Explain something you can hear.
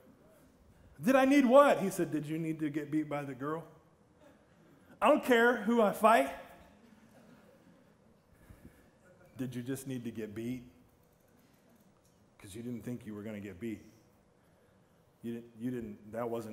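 A middle-aged man speaks with animation through a microphone, in a large echoing hall.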